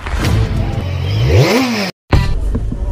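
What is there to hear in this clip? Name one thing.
A scooter engine revs up briefly.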